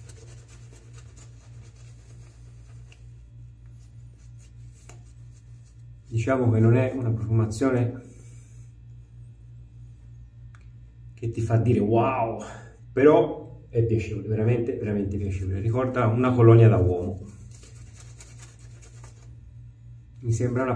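A shaving brush swishes softly through lather on a face.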